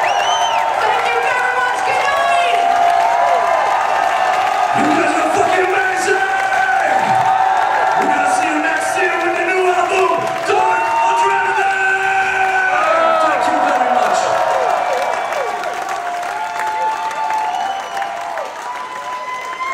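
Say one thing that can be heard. A large crowd cheers loudly in a big echoing hall.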